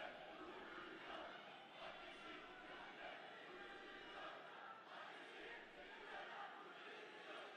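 A large crowd cheers and chants loudly.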